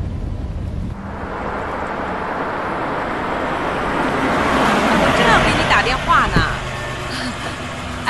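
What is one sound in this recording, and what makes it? A car engine approaches and idles.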